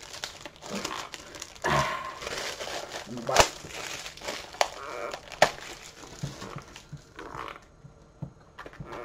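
Plastic wrapping crackles and tears as a box is unwrapped.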